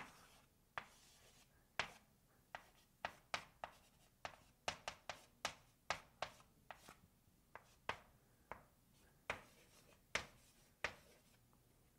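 Chalk taps and clicks sharply against a blackboard.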